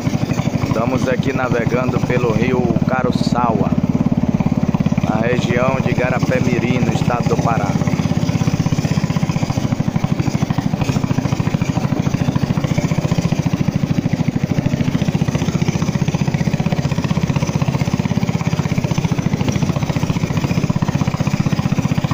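A small boat engine chugs steadily.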